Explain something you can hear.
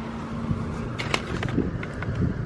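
A plastic pen package crinkles under a hand.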